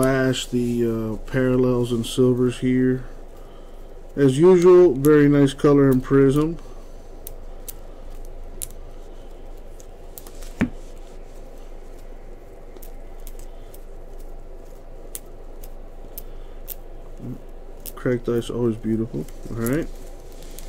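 Trading cards flick and rustle between hands.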